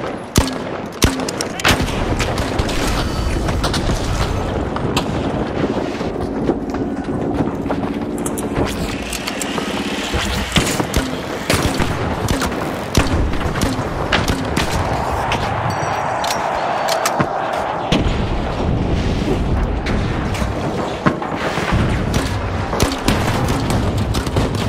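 An explosion booms with debris crashing down.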